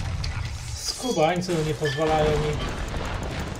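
A man speaks through a microphone.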